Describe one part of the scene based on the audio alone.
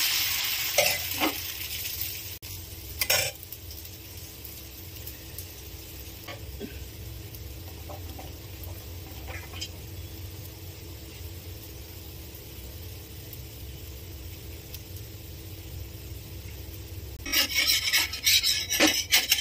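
Batter sizzles on a hot griddle.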